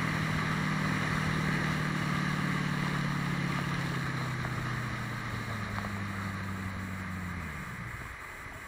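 A motorboat engine drones loudly, then slows and dies away.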